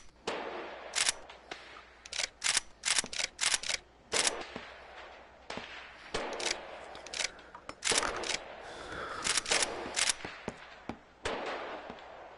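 A gun fires repeatedly, each shot ringing out with an echo.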